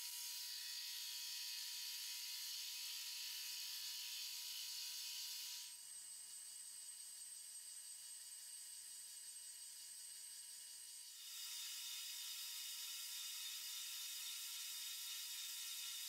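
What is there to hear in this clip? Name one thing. A metal lathe hums and whines steadily.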